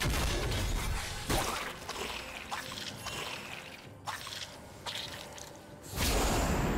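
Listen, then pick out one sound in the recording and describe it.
Fantasy battle sound effects whoosh and strike in short bursts.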